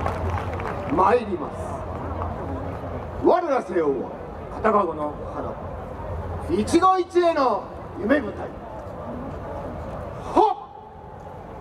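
A group of dancers shout together in loud calls.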